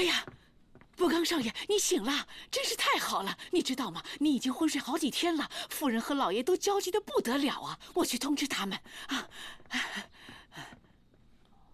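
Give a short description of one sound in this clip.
An elderly woman speaks warmly and with animation, close by.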